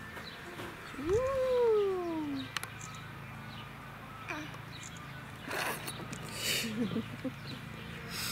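A toddler squeals and babbles close by.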